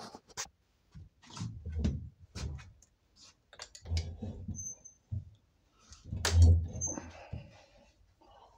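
A man sits down heavily on a chair.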